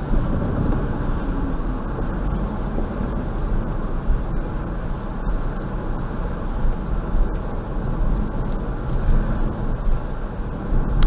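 A car drives steadily along a highway, with a low rumble of road and engine noise.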